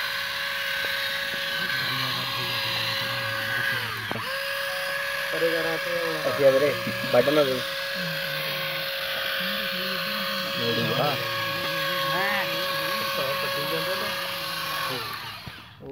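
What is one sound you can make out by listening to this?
A small motor hums steadily.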